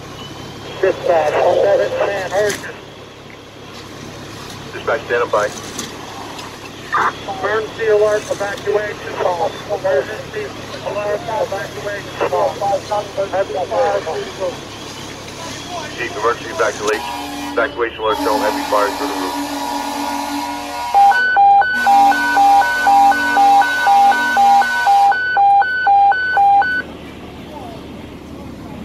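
A fire engine's motor idles with a low, steady rumble.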